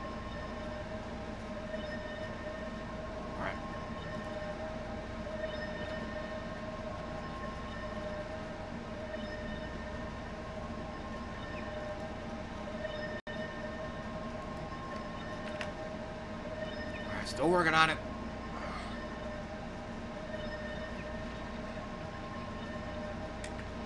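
Soft game music hums steadily in the background.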